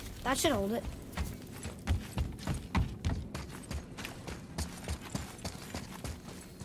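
Heavy footsteps thud on a stone floor.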